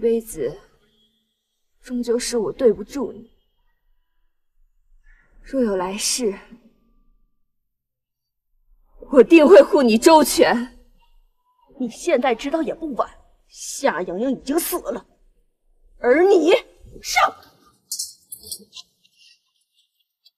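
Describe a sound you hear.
A young woman speaks softly and sorrowfully, close by.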